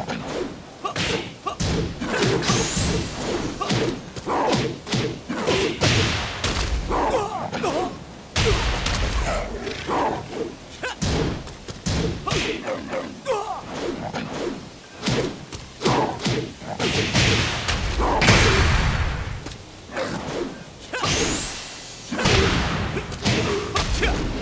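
Punches and kicks land with sharp, heavy thuds again and again.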